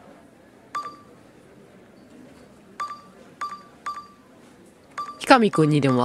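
A game menu beeps as the cursor moves between choices.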